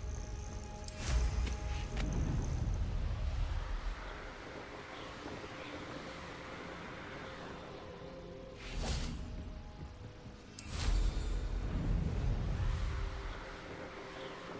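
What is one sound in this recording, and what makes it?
A broom whooshes into flight with a deep rush of air.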